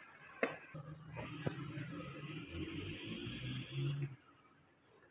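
A wooden spoon stirs food in a pan.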